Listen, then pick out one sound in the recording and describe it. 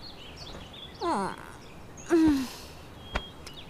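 A young woman cries out sharply twice, close by.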